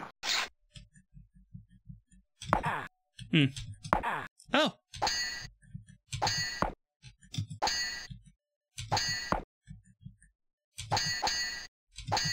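Swords clash in a video game's sword fight.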